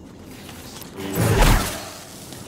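A lightsaber swings through the air with a loud whoosh.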